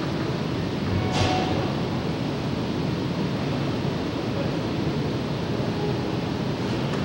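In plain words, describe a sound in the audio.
A jazz big band with saxophones plays live in a large echoing hall.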